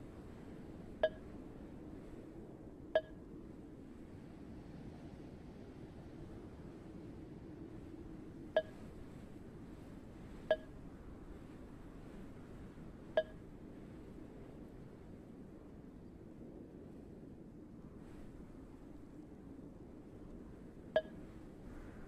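A short, bright game chime sounds now and then.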